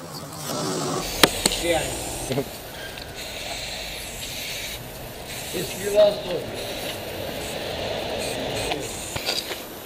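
A spray can hisses in bursts.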